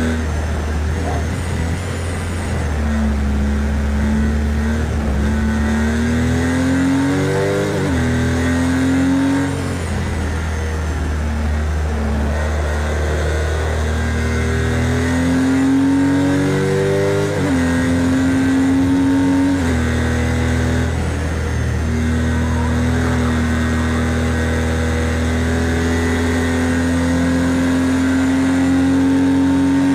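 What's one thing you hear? A racing car engine revs high, rising through the gears and dropping sharply at each shift.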